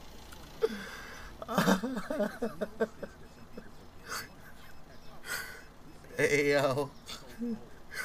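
A man laughs loudly, close to a microphone.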